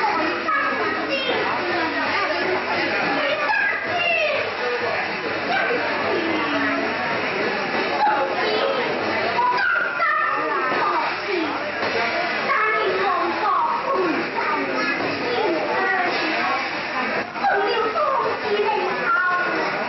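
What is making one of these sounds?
A woman sings, heard through a loudspeaker in a large hall.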